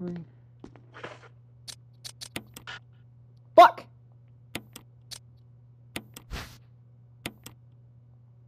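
Menu selection clicks and beeps sound in quick succession.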